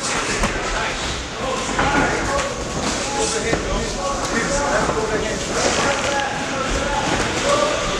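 Gloved punches thud against pads and bodies.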